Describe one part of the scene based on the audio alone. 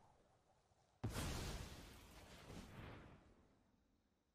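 A fiery blast whooshes.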